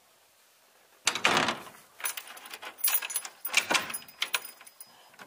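A key rattles and clicks in a door lock.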